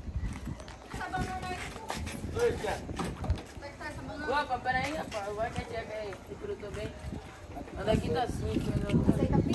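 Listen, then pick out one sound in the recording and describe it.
Young men talk with each other outdoors, close by.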